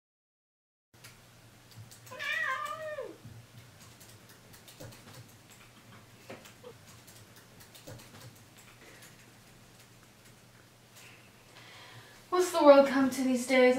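Fingers tap softly on a laptop keyboard.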